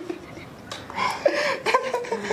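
A young woman speaks close to a microphone.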